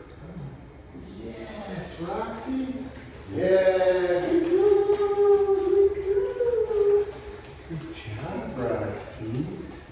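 A dog's paws patter on a hard floor.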